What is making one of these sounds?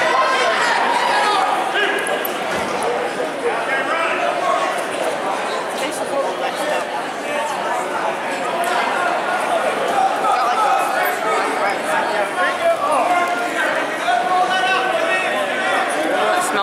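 A crowd of spectators chatters and cheers throughout a large echoing gym.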